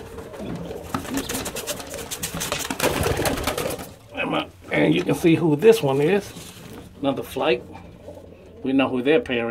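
Pigeons flap their wings in a close, rustling flutter.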